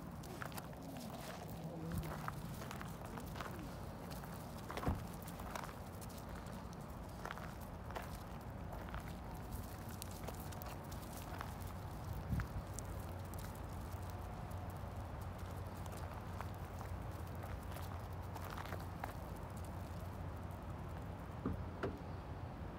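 Small animals patter and scuffle on gravel close by.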